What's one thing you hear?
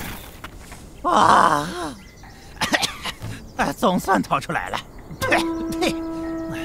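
A cartoon creature grunts and growls with animation.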